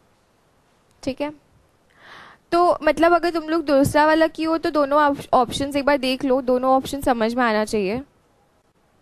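A young woman explains calmly into a close microphone.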